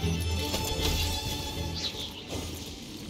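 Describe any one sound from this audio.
Fiery blasts crackle and roar in a game fight.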